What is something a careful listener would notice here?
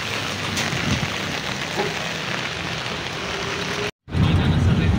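Rain falls on wet ground.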